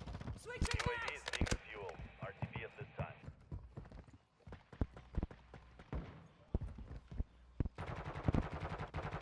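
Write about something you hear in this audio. Gunshots crack sharply in a video game.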